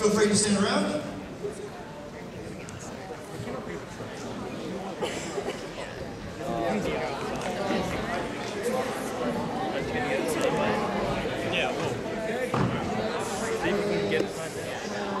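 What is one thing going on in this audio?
A crowd of people chatter in a large echoing hall.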